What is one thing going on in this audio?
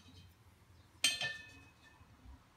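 A steel square clanks against a steel gas cylinder.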